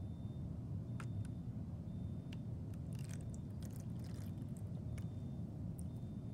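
A plastic bottle clicks and crinkles in a hand.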